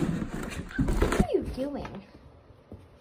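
A dog's paws scramble on a hard floor.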